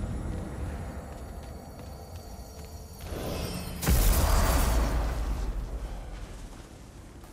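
A magical portal roars and whooshes loudly.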